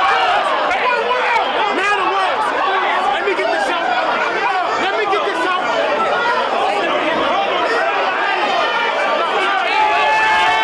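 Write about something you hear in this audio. A crowd of young men cheers and shouts.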